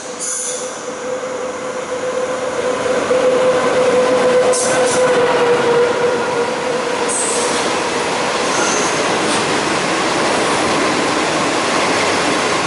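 A train approaches and rumbles loudly past, close by.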